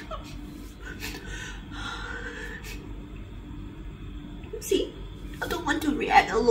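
A young woman speaks tearfully close to a microphone.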